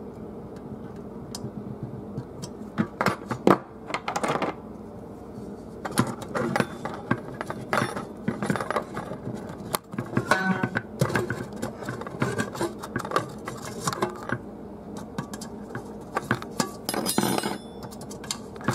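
Pliers click against metal.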